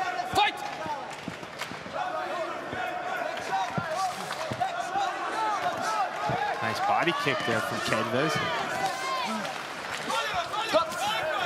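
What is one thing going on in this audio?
Gloved punches and kicks thud against a fighter's body.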